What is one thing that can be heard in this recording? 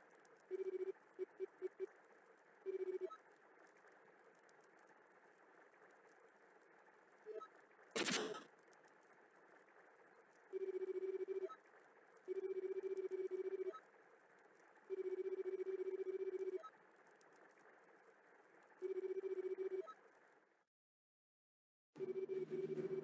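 Rapid electronic beeps chatter in bursts, like game dialogue text printing out.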